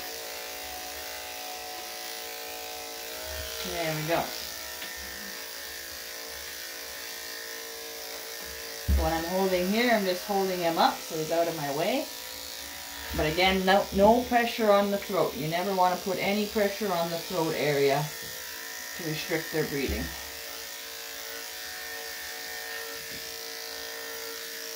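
Electric clippers hum steadily close by.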